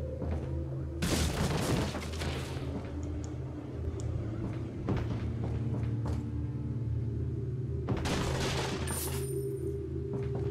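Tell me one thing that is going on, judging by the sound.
Wooden crates and barrels smash and crack under knife blows.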